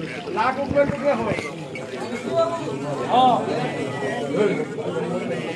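Water pours from a metal pot onto stone.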